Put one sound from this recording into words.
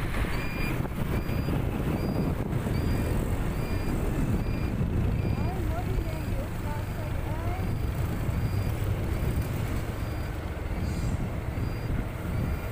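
Road noise from a moving vehicle rumbles steadily throughout.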